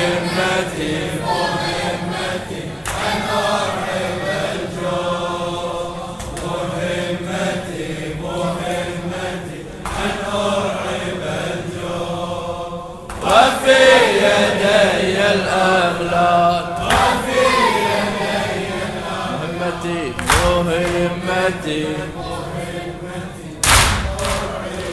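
A man chants with feeling into a microphone, heard through a loudspeaker in an echoing hall.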